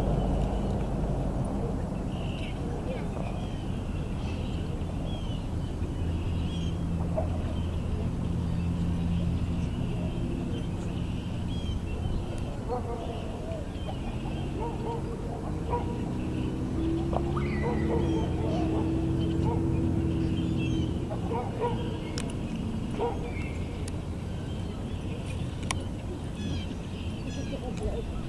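A stick scrapes and drags across dry ground.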